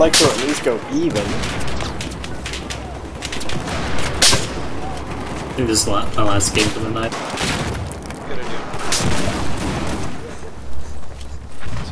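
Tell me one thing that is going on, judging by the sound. Gunshots crack in short, sharp bursts.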